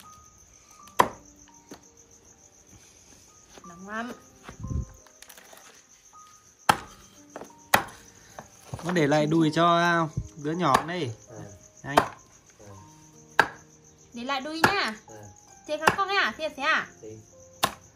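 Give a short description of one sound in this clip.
A cleaver chops sharply on a wooden board.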